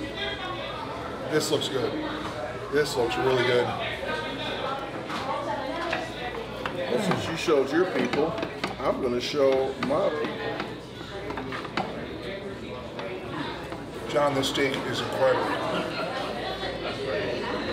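A knife scrapes and clinks on a plate.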